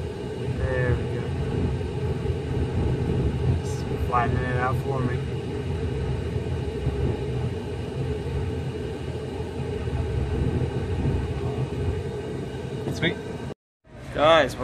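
A car engine hums low and steadily inside the cabin.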